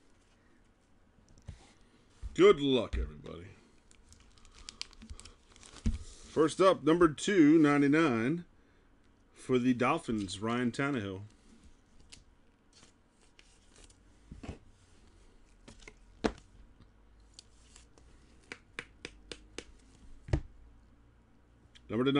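Gloved hands handle and shuffle trading cards.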